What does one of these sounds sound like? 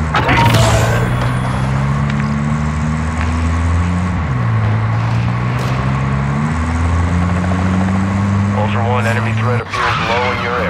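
A car engine hums steadily and changes pitch as the car drives.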